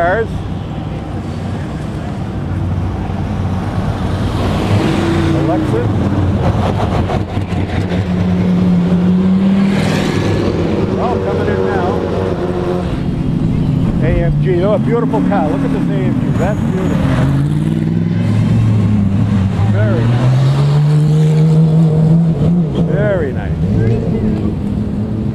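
Race car engines idle and rev nearby, rising and falling in pitch.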